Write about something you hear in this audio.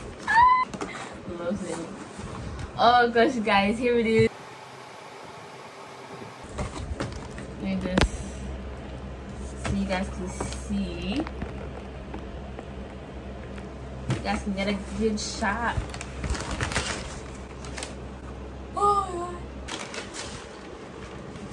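Cardboard and paper packaging rustle and crinkle.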